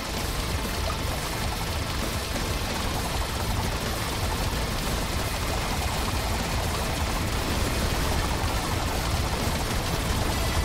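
Game towers fire rapid shots in a continuous dense barrage.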